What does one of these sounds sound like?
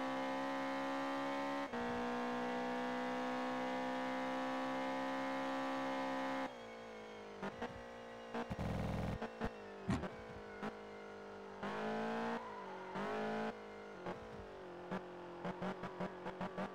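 A car engine roars at high speed, holding steady and then rising and falling as the car brakes and speeds up through bends.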